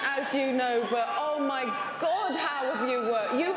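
A woman speaks with emotion through a microphone.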